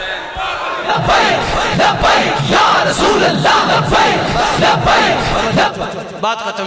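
A crowd of men chants loudly in unison.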